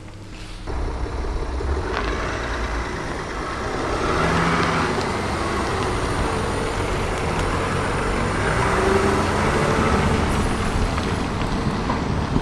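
A car engine rumbles close by.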